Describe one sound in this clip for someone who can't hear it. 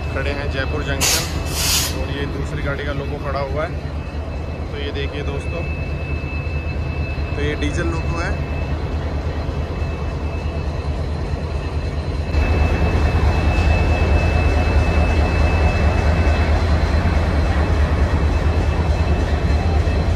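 A train rolls past on the rails.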